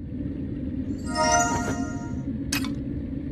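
A bright magical chime rings out with a shimmer.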